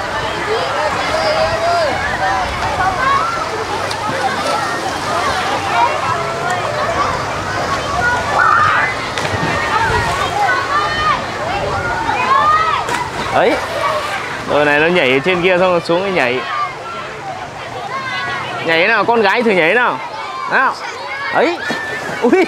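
A crowd of children and adults shout and laugh outdoors.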